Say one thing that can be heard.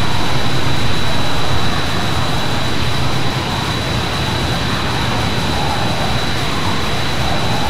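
A jet engine roars steadily close by.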